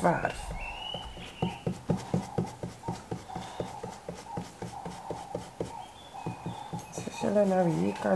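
A stiff brush dabs and taps quickly against wood.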